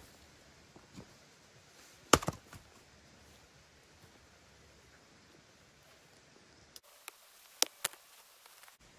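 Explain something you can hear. An axe chops into wood with sharp thuds.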